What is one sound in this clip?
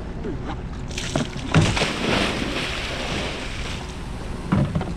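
Fish splash and churn in the water.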